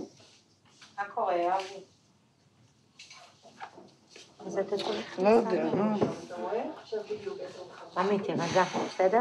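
A woman speaks gently and reassuringly close by.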